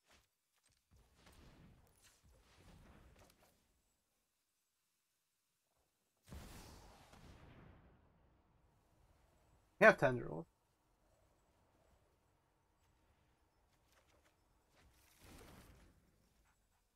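Soft magical whooshes and chimes sound as game cards are played.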